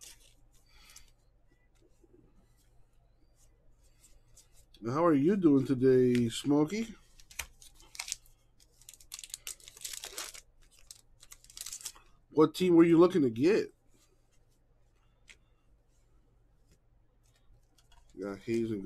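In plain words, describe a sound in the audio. Trading cards slide and shuffle against each other.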